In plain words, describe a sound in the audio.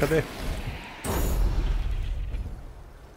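A magic blast bursts with a roaring whoosh.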